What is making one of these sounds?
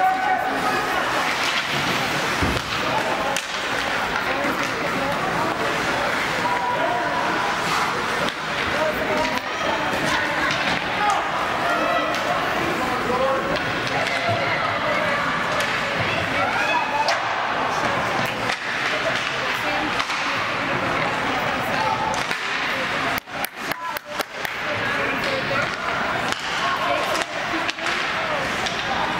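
A crowd of spectators chatters in a large echoing rink.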